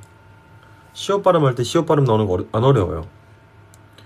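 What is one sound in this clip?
A young man speaks close to a phone microphone with animation.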